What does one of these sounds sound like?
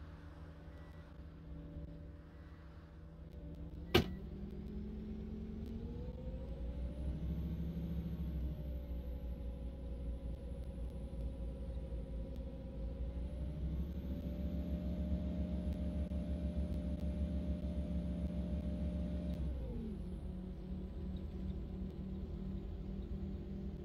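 A bus engine idles, then revs up and pulls away, its pitch rising and falling as the bus drives.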